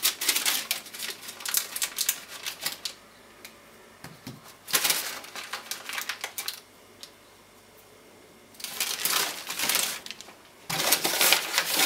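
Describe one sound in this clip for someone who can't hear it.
A plastic sheet rustles and crinkles in bursts.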